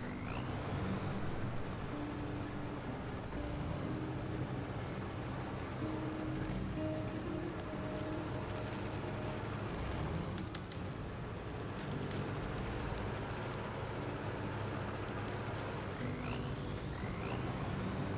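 A heavy truck engine rumbles steadily as the truck crawls along.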